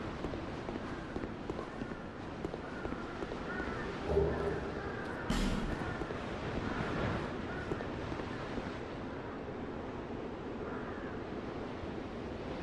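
Armoured footsteps clank on a stone floor.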